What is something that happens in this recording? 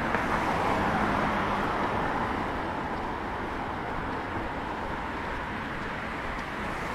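Traffic rumbles steadily along a nearby street outdoors.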